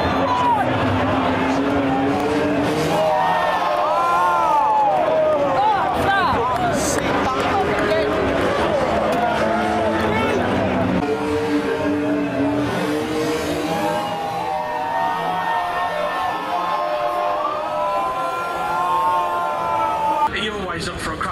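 Car engines roar and rev loudly.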